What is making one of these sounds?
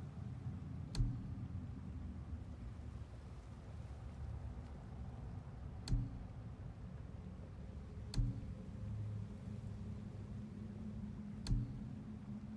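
Soft interface clicks sound as menu items are switched.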